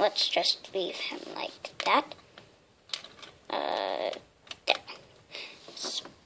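Small plastic toy pieces click together.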